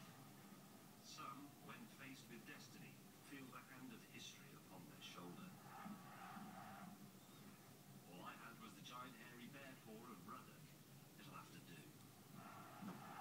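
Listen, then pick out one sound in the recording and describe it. A man speaks calmly, heard through a television speaker.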